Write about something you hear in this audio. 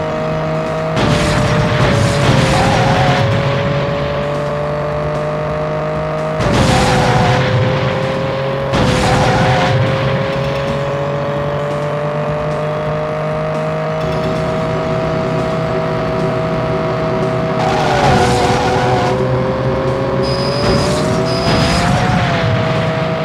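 Crashes and scraping bursts break in now and then.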